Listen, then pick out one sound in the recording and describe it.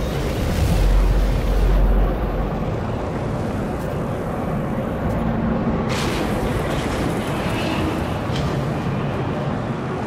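A spaceship engine roars steadily with a deep rumble.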